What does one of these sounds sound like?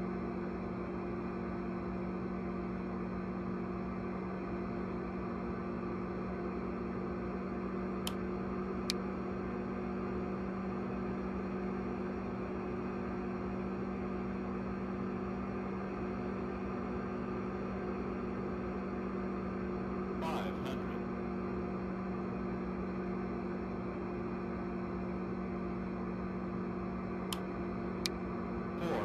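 Jet engines hum steadily with a low drone.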